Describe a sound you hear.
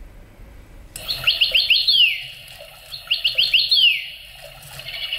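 A toy bird in a cage chirps in quick electronic trills.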